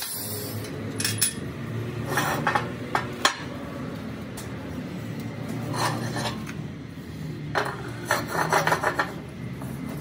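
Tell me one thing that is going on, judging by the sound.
Metal parts clink and knock against a metal workbench.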